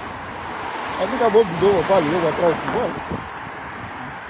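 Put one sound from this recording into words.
A middle-aged man speaks with animation close to a phone microphone.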